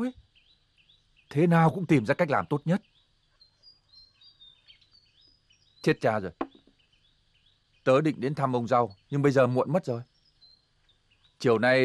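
A middle-aged man speaks earnestly and close by, in short bursts.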